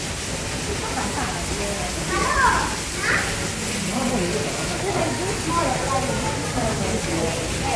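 Children talk and call out excitedly nearby.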